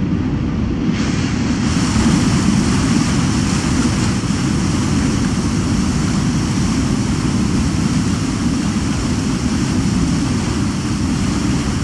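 Water rushes and splashes along a ship's hull.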